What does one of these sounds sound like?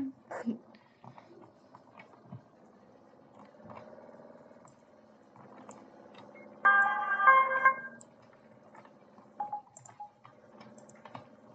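A van engine hums as it drives along a road.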